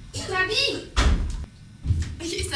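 A toilet stall door bangs.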